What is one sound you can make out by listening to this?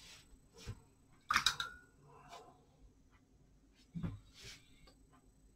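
A brush swishes and taps in wet paint on a palette.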